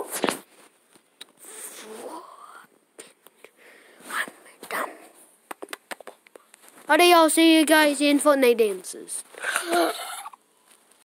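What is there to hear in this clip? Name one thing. A young child talks close to a phone microphone.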